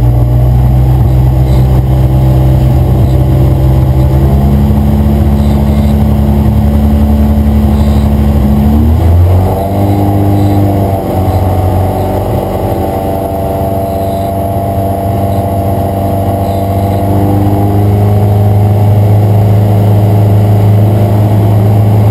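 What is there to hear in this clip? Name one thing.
A race car engine roars loudly from close by, holding a steady pitch, then drops sharply at a gear change and climbs again.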